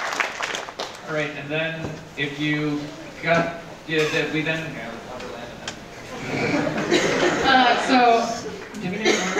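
A group of young people sings together in a large hall.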